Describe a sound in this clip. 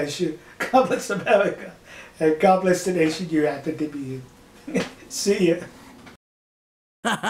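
An elderly man talks with animation close to a microphone.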